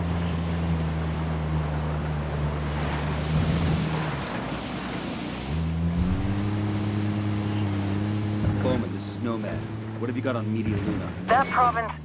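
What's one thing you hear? A car engine hums and revs while driving over rough dirt.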